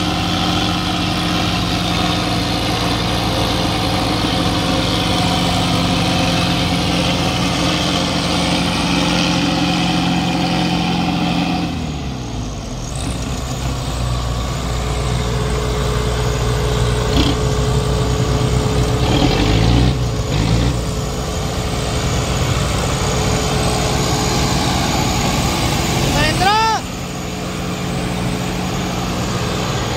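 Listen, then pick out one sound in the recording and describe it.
Tractor engines rumble and labour close by.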